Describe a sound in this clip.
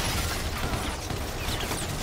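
An automatic rifle fires rapid bursts of shots close by.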